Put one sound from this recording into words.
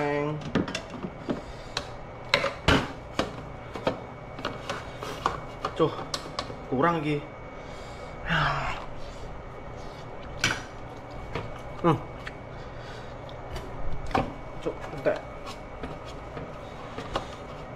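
A spoon scrapes and clinks against a metal bowl.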